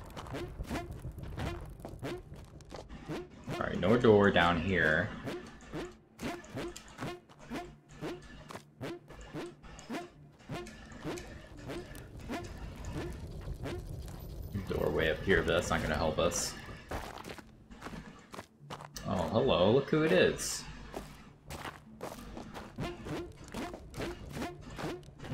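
Quick, light footsteps patter on stone.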